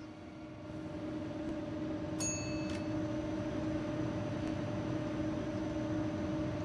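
A train's electric motor hums steadily as the train rolls along the track, growing louder.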